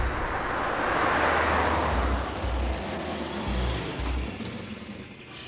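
A car engine hums as a car drives past.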